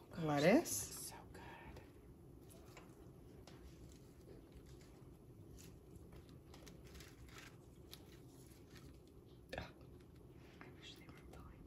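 Shredded lettuce rustles softly as it is sprinkled by hand.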